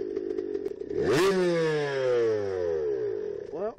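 A dirt bike engine revs sharply up and then drops back.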